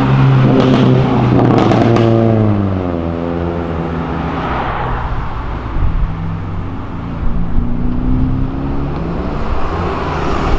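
A car engine revs and then drops in pitch as it drives past.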